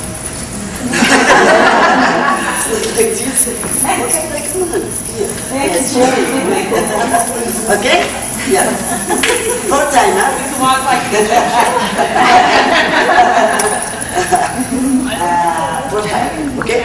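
A woman speaks with animation in an echoing room.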